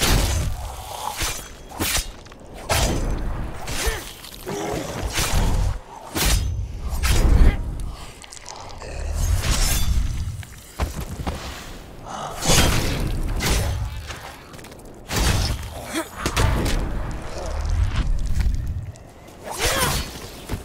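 Zombies growl and groan.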